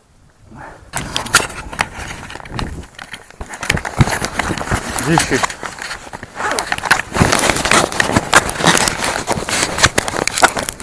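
Clothing rustles and rubs loudly close by.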